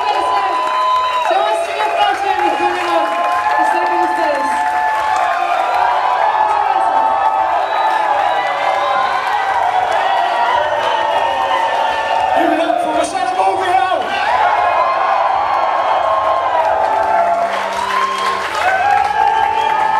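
A large crowd sings and cheers loudly in an echoing hall.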